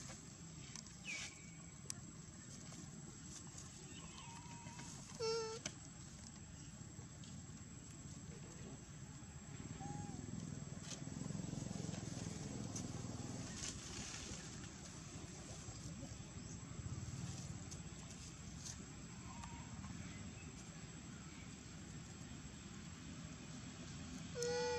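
A baby monkey squeals with short, high cries now and then.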